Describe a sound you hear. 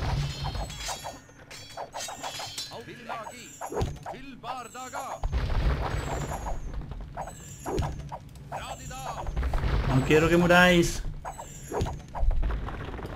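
Swords clash and clang in a small battle.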